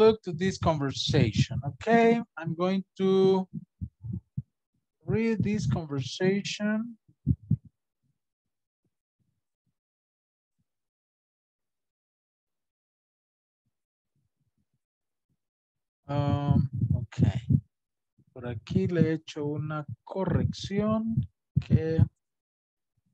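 A middle-aged man speaks calmly over an online call, pausing now and then.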